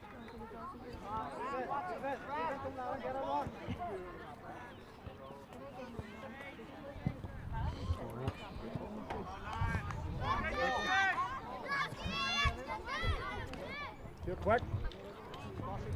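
Young players shout to each other across an open pitch outdoors.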